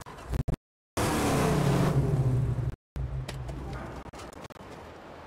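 A car engine roars as a car drives off.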